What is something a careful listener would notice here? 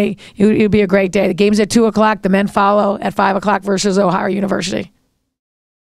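A woman speaks calmly into a microphone up close.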